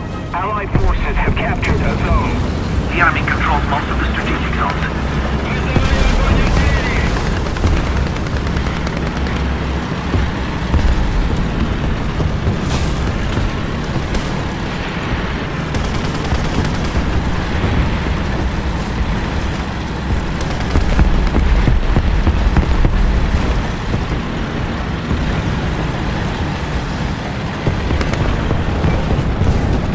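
A tank engine rumbles steadily as the tank drives over rough ground.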